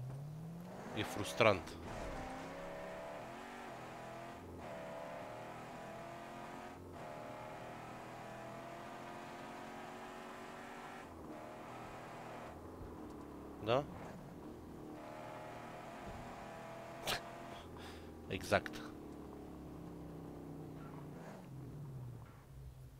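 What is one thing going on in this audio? A vehicle engine hums and revs steadily.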